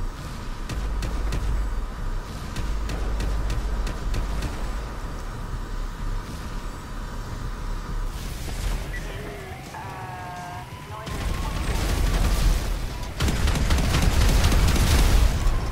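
Fires roar and crackle.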